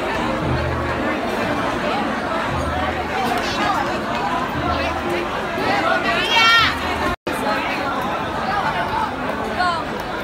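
A crowd of people chatter nearby in a busy echoing hall.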